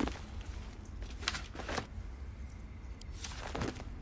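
Soft interface clicks sound as an item is picked up.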